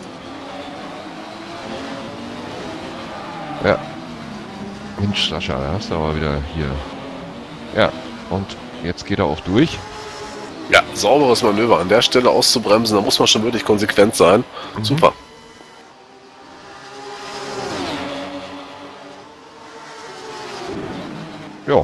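Racing car engines roar and whine, rising and falling as the cars speed by.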